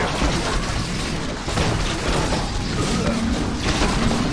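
Game battle sounds clash and clatter.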